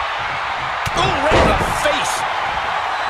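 A body slams heavily onto the ring mat.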